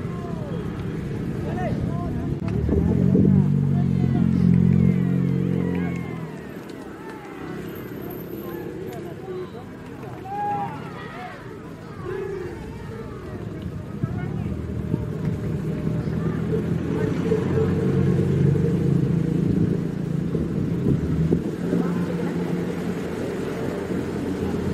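A crowd of men talk and call out outdoors.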